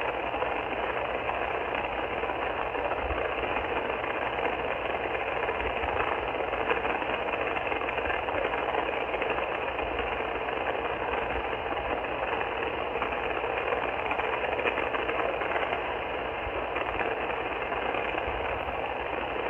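Static hisses steadily from a radio receiver's loudspeaker.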